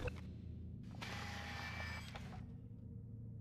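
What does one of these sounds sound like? A wooden mechanism slides down and clunks into place.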